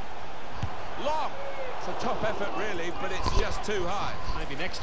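A stadium crowd whistles shrilly.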